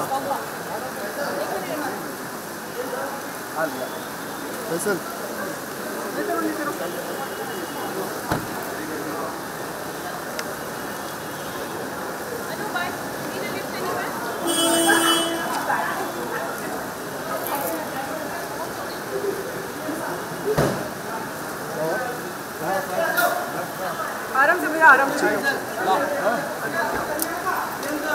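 A crowd of men call out and chatter nearby.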